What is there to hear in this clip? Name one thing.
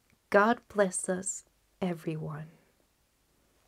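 A young woman speaks expressively close to a microphone.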